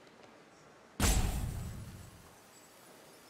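A deep booming game sound effect strikes and fades out quickly.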